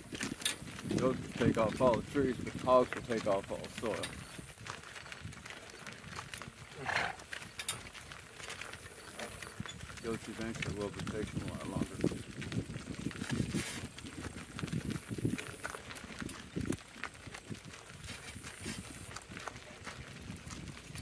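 Cart wheels crunch over gravel.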